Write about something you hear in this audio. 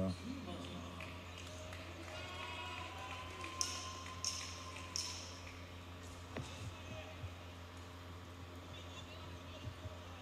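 Spectators call out and chatter in a large hall.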